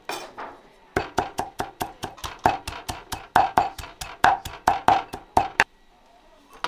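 A cleaver chops rapidly on a wooden board.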